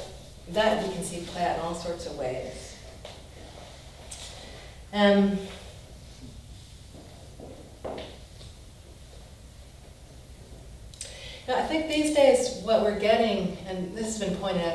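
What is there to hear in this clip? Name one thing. A woman speaks calmly, close by.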